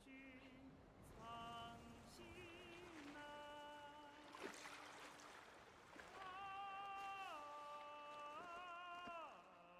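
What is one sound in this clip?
Water splashes softly against a moving raft.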